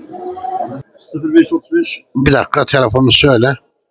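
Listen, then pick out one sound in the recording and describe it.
An older man speaks close by, with animation.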